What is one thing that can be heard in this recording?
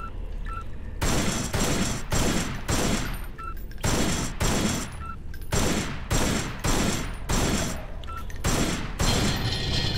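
Pistol shots ring out in quick bursts with a short echo.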